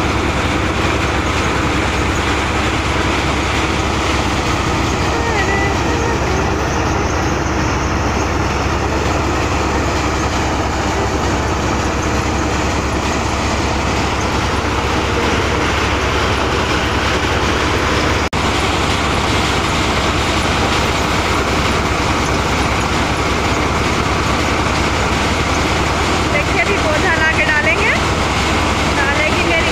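A threshing machine engine roars steadily close by.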